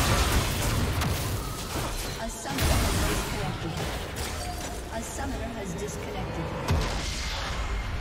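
Spell effects crackle and burst during a fight.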